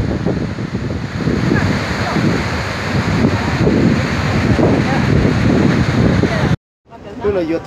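A river rushes and roars steadily outdoors in wind.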